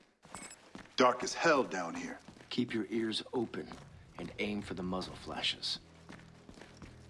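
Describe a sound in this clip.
A man speaks calmly over a radio.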